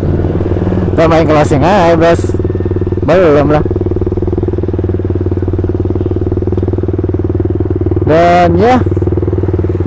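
A motorcycle engine revs up in short bursts.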